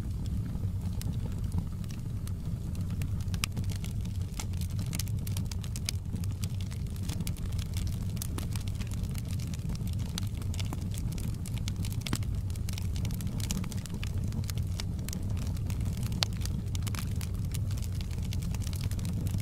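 A wood fire roars steadily.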